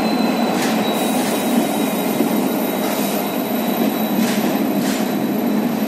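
A passenger train rolls steadily along a platform, its wheels rumbling and clattering on the rails.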